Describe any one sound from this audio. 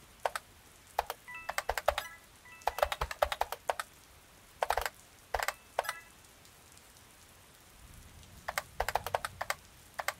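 Quick footsteps patter on a hard floor.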